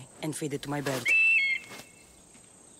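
An eagle gives a short, shrill cry.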